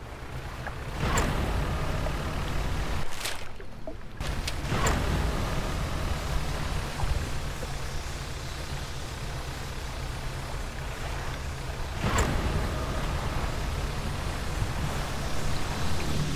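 A boat engine rumbles steadily over water.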